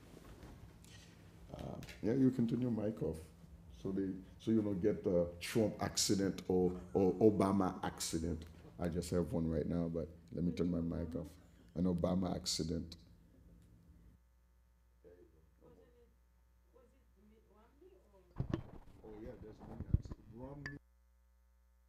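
A man speaks calmly and earnestly into a close microphone.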